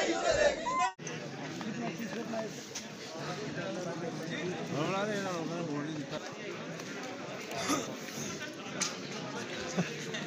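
A crowd of men talks and murmurs at once.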